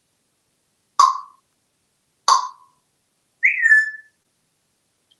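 A parrot gives sharp whistles.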